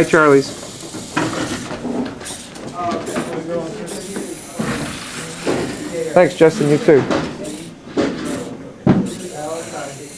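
A small robot's motor whirs as it rolls across a hard floor.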